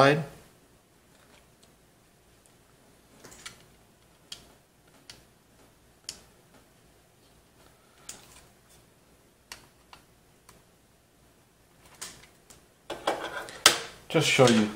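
Cables and small metal parts click and rustle.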